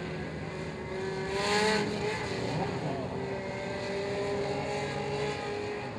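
Race car engines roar steadily as the cars speed past.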